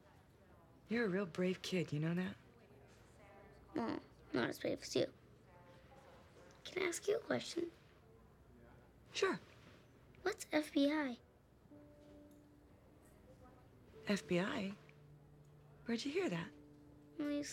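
A young woman speaks softly and gently, close by.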